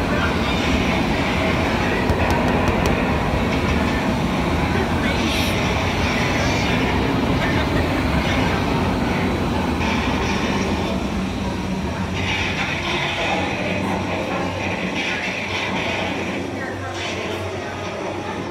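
Strong wind roars loudly and steadily, then dies down.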